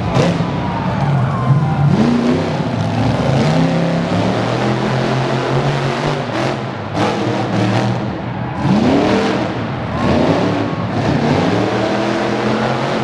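A monster truck engine roars loudly, revving up and down.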